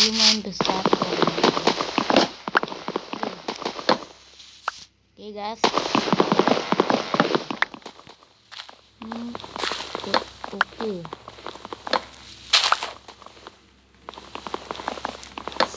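Wooden blocks are chopped with rapid, repeated knocking crunches.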